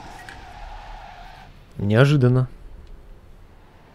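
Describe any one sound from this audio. Tyres screech as a car skids sideways.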